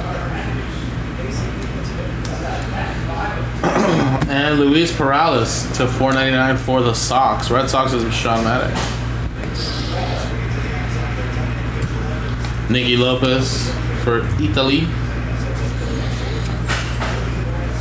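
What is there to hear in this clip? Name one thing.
Trading cards slide and rustle in a man's hands.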